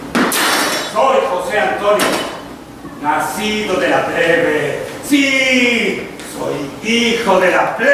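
A man speaks loudly and with animation in a large echoing hall.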